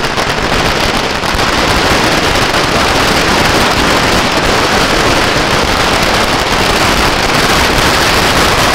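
Firecrackers crackle and pop rapidly and loudly close by.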